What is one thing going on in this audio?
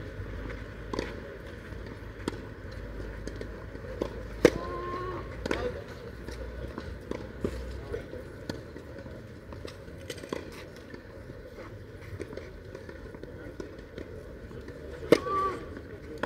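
Tennis balls are struck back and forth with sharp pops.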